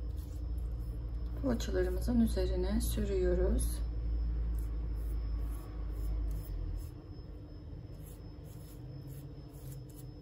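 A pastry brush softly swishes over dough.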